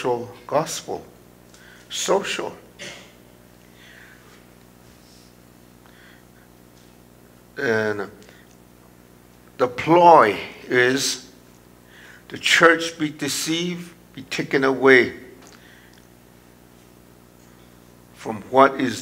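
An elderly man speaks slowly and earnestly through a microphone, with pauses between phrases.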